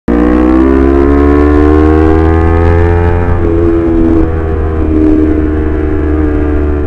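A parallel-twin sport bike engine pulls under throttle, rising in pitch.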